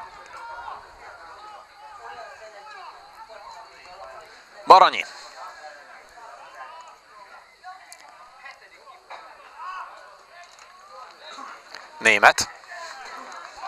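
Men shout and call out to each other across an open playing field.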